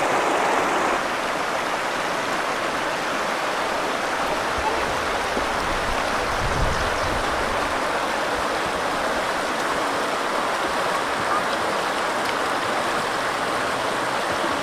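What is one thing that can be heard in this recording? A shallow river babbles steadily over stones.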